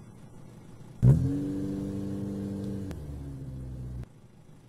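A car engine runs with a low, steady rumble.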